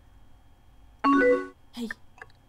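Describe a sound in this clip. A computer alert chimes briefly.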